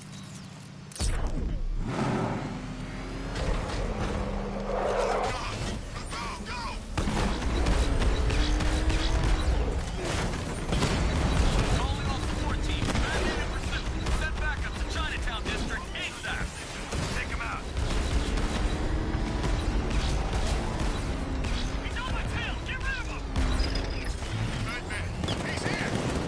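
A powerful car engine roars and revs as the car speeds through an echoing tunnel.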